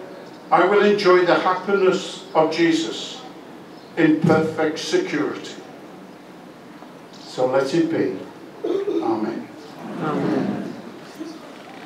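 An elderly man speaks slowly and solemnly through a microphone, echoing outdoors.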